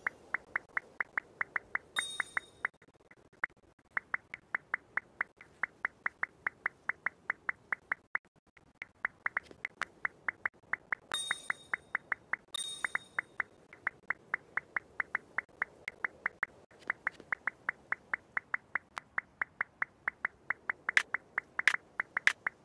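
Blocks snap into place one after another in a quick, even rhythm.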